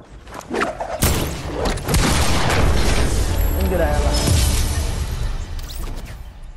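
Rapid gunshots crack in a game.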